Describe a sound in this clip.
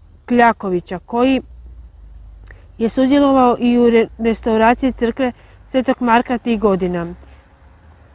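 A young woman speaks calmly and closely into a clip-on microphone.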